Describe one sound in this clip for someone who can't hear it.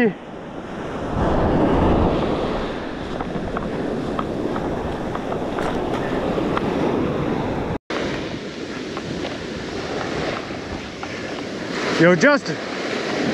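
Waves break and wash up onto the shore.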